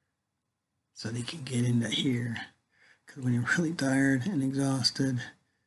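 An older man speaks calmly and close up.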